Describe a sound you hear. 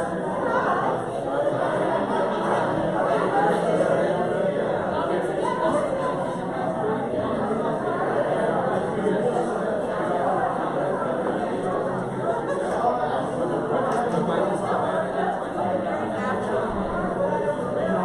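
A man and a woman talk quietly nearby.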